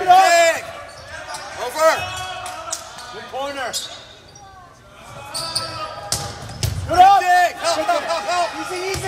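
Young players call out to each other in a large echoing gym.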